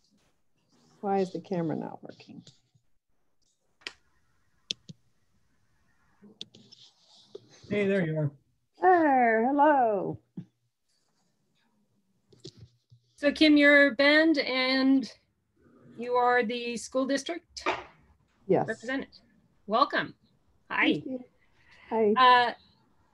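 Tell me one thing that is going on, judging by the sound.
A woman speaks calmly over an online call, with short pauses.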